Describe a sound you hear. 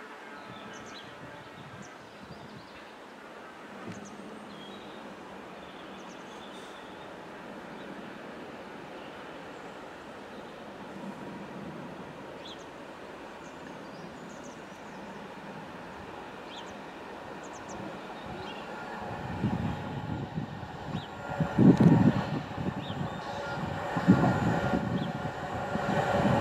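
A diesel locomotive rumbles steadily as it approaches along the track.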